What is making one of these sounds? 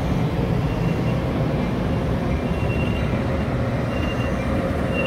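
A train rumbles past close by, with its wheels clattering on the rails.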